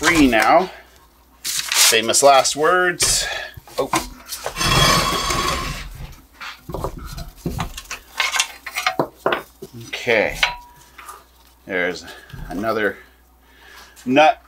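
A middle-aged man talks calmly up close.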